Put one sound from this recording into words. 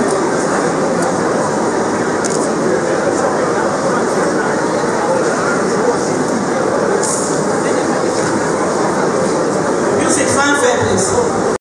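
A crowd murmurs and chatters steadily in a large hall.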